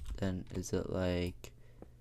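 A pickaxe chips at stone blocks.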